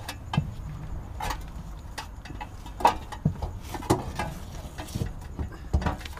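Metal tools clink and knock close by.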